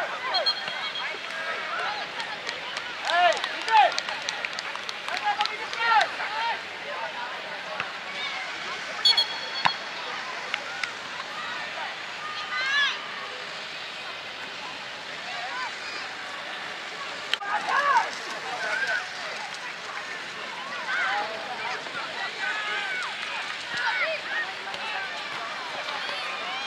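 Children shout and call out across an open field outdoors.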